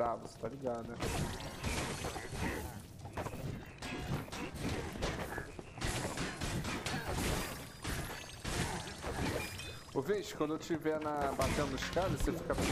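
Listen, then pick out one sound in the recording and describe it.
Weapons clash and magic blasts burst in a fast, busy fight.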